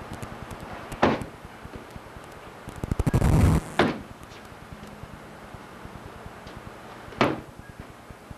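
A kick thumps hard into a padded shield, several times.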